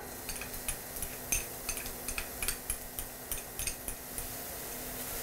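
Small pieces of diced carrot patter into a pan.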